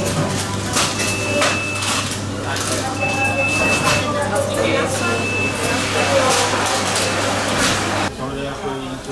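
A crowd chatters.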